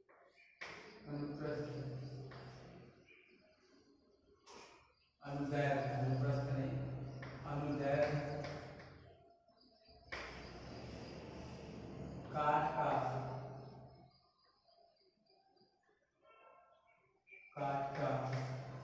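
A young man speaks in a calm, explaining tone in an echoing room.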